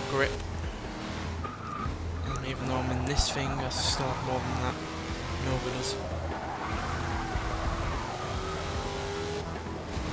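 Tyres screech as a car slides through turns.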